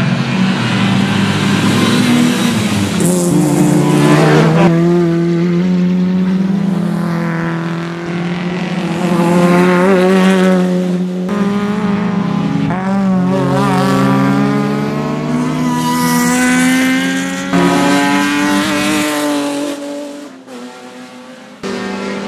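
A race car engine roars loudly, revving up and down as cars speed past.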